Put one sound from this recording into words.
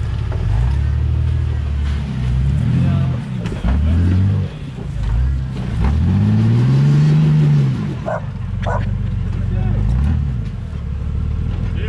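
Rocks scrape and knock under tyres.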